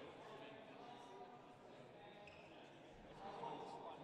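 A middle-aged man talks nearby.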